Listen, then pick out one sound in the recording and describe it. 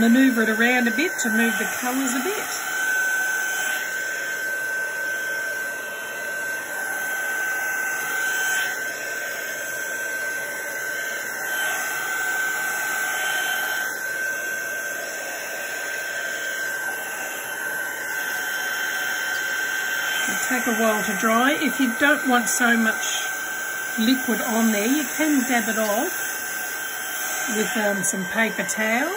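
A craft heat gun blows with a steady high whine.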